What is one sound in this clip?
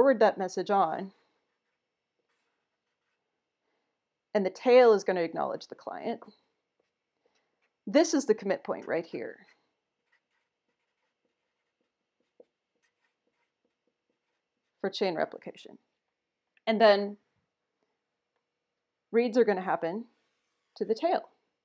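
A woman speaks calmly into a microphone in short phrases with pauses.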